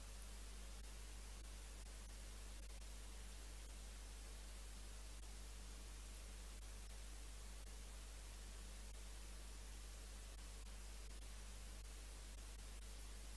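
Footsteps tap faintly on a hard floor.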